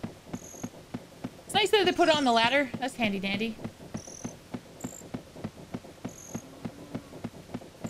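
Footsteps clack rhythmically on wooden ladder rungs.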